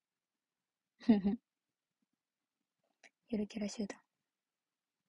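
A young woman speaks softly and close by in short bursts.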